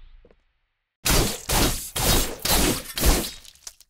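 Sword blows strike in quick, sharp hits.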